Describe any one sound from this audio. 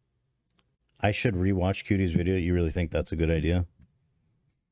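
A man speaks loudly and with animation into a close microphone.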